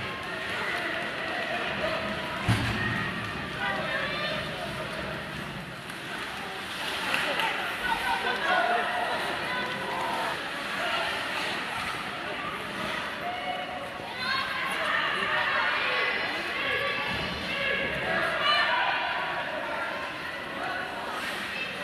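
A crowd of spectators chatters and calls out in a large echoing arena.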